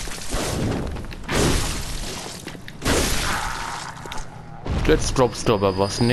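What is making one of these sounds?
A blade slashes and strikes flesh with wet impacts.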